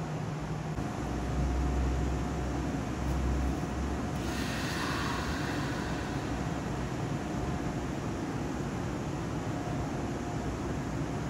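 A train rumbles slowly into the station.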